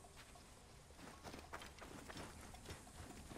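Footsteps run over grass and rock.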